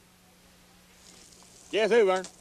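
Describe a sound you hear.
Water sprays from a garden hose onto a car.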